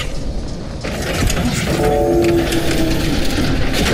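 A large metal door slides open with a hiss.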